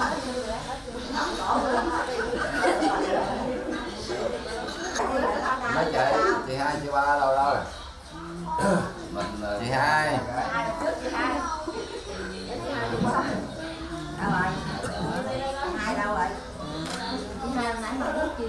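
Several men and women talk and chatter nearby.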